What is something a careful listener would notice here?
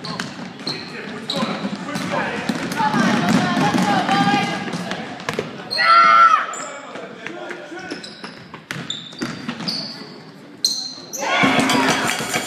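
A crowd of spectators cheers and calls out, echoing in a large hall.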